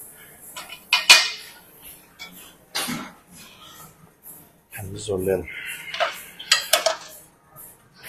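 A weight machine clanks as weights lift and drop.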